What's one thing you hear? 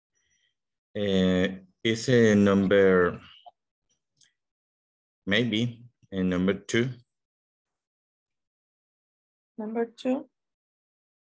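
A man reads sentences aloud calmly over an online call.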